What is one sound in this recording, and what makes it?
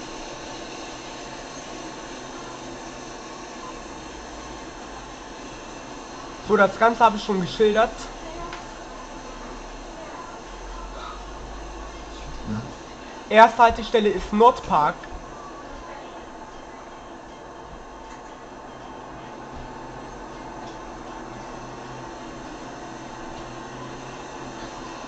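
A diesel city bus engine drums as the bus drives, heard through a loudspeaker.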